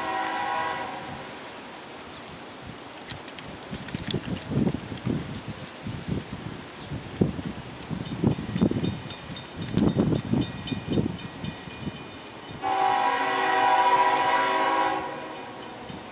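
A diesel locomotive engine rumbles as it approaches.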